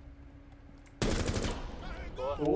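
Rapid gunfire bursts out.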